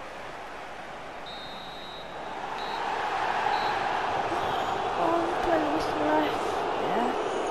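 A large stadium crowd roars steadily, growing louder.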